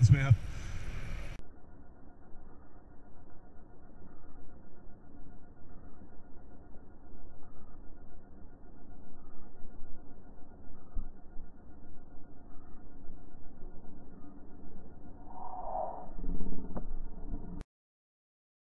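Wind rumbles against a microphone.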